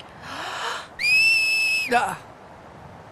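A young woman whistles loudly, the whistle rising and then holding.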